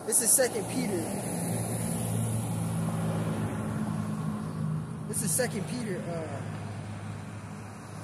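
A vehicle passes by on the street.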